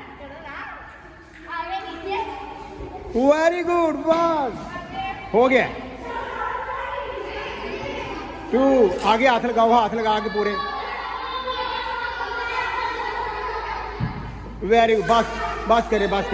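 Young girls laugh and chatter close by.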